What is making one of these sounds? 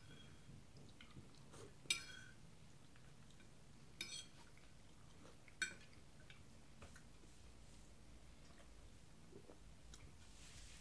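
A man chews and smacks his lips close to the microphone.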